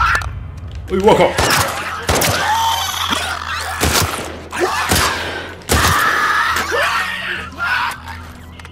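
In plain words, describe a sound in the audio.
A creature snarls and shrieks.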